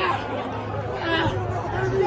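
A young man yells in triumph.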